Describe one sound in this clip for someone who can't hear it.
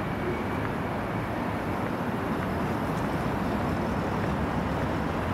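City traffic rumbles steadily in the distance.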